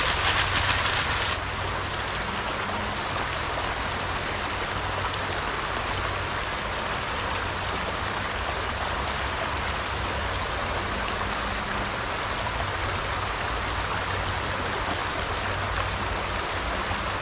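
Water splashes as a man scoops in a shallow stream.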